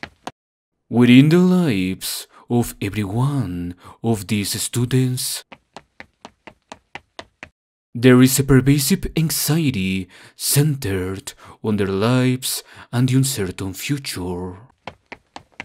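A young girl speaks with animation, close by.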